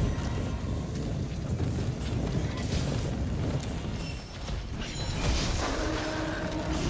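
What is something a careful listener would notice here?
A huge dragon rumbles with a deep, steady roar.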